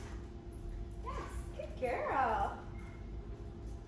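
A young woman speaks to a dog in a high, coaxing voice.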